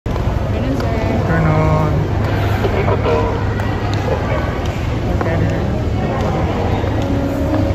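Many voices murmur in a large echoing hall.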